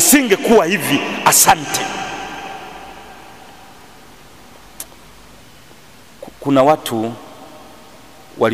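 A man speaks into a microphone with animation, his voice echoing around a large hall.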